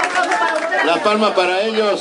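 A woman claps her hands along to the music.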